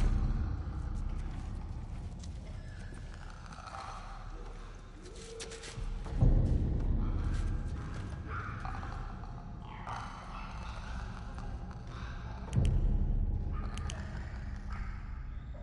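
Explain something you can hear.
Footsteps shuffle softly over a littered floor.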